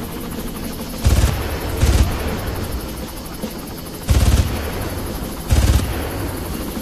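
Rifle shots boom loudly, one after another.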